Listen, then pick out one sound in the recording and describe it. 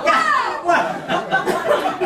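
A man laughs heartily.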